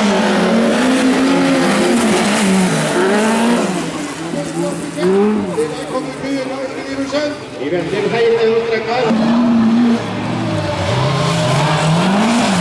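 Rally car engines roar and rev hard, rising and falling in pitch.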